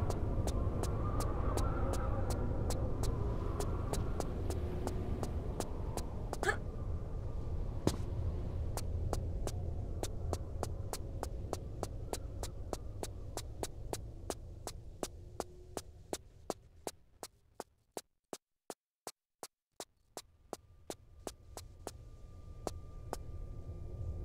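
Quick footsteps tap steadily on a hard floor as someone runs.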